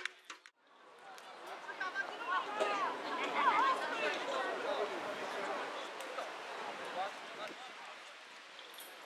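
A man talks to a group of children outdoors, at a distance.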